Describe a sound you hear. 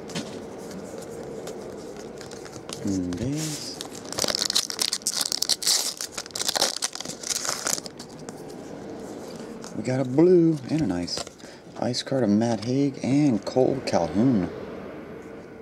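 Trading cards slide and flick against each other as they are shuffled.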